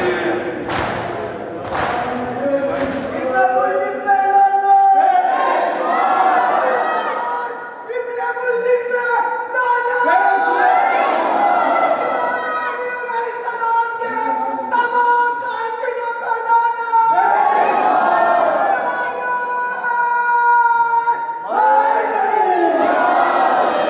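A crowd of men chants loudly together in an echoing hall.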